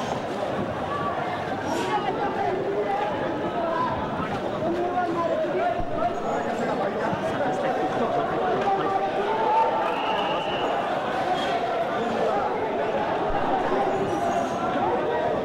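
A crowd of men shouts and clamours outdoors.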